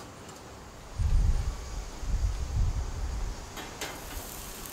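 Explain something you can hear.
A wire grill basket thuds down onto a grill.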